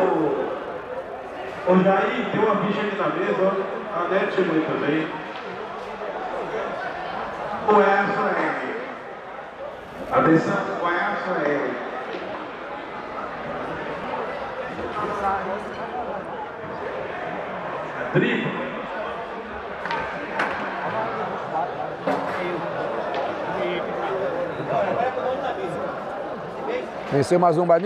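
A crowd of men murmurs and chatters nearby.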